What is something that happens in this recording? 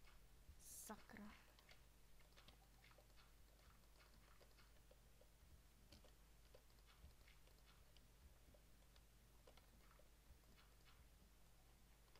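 Soft crunching thuds sound as dirt blocks are dug out.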